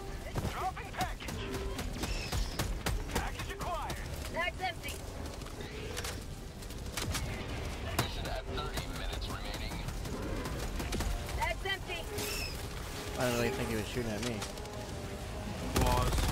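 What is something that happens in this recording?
Gunfire rattles in sharp bursts.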